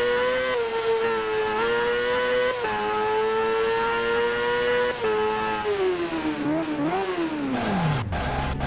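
A motorcycle engine whines loudly, rising and falling in pitch as it shifts gears.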